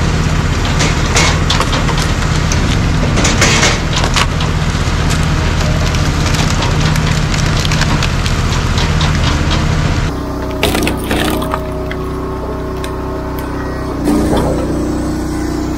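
An engine runs with a steady low drone.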